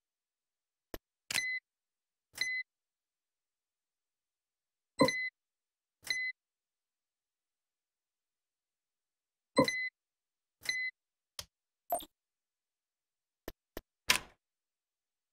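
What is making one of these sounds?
Short electronic beeps sound now and then.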